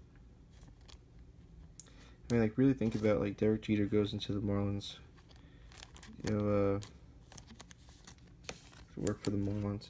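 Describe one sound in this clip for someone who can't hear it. A plastic card sleeve crinkles and rustles as a card is pushed into it.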